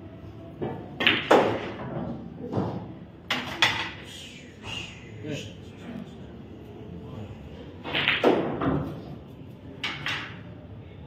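A cue stick sharply strikes a pool ball.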